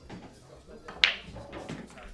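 A cue ball strikes a racked pack of pool balls with a sharp crack.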